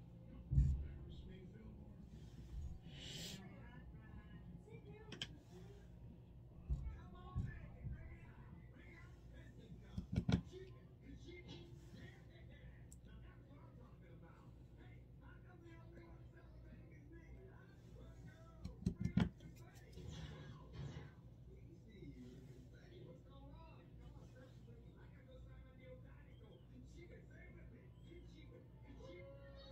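A makeup brush softly brushes against skin.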